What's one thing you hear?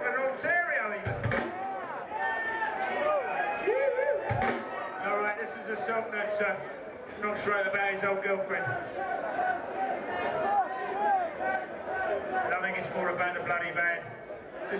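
A rock band plays loudly and live.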